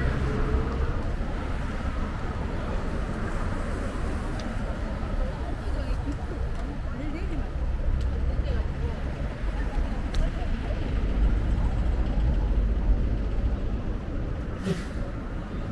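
City traffic hums steadily in the distance, outdoors.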